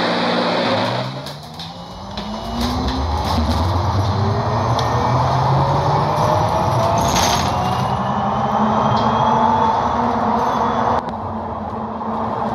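A bus engine whines, rising in pitch as it pulls away.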